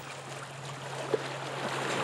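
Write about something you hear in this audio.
Footsteps crunch on stones.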